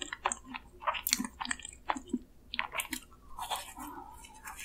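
A young woman bites into a soft doughnut.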